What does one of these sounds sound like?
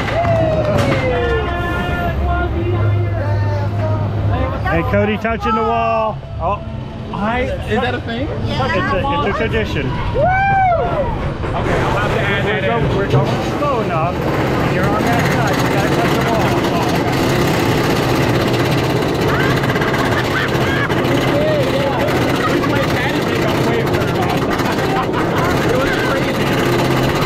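A roller coaster rattles along its track.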